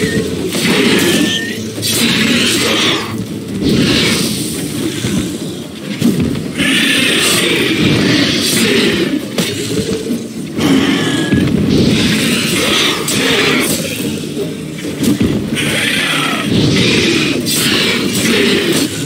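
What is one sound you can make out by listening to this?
A large beast roars and screeches.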